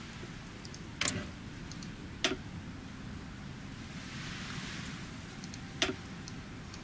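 Short menu clicks sound now and then.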